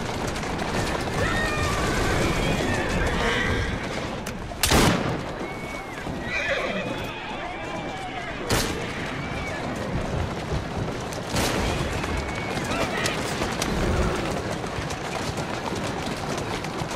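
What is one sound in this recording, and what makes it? Horse-drawn wagon wheels rumble over cobblestones.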